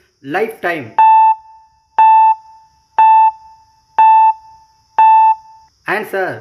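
A countdown timer beeps once a second.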